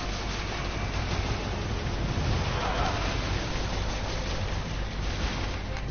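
Fire crackles and roars in bursts.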